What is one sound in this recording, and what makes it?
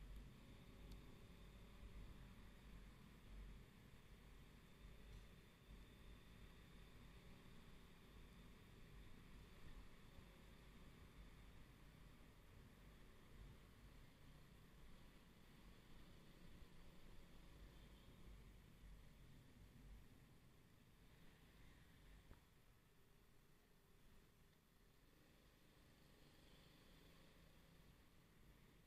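A motorcycle engine hums steadily up close while riding.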